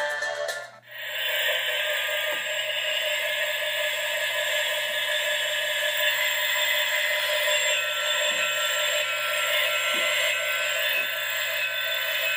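A diesel train engine rumbles steadily, heard through a small loudspeaker.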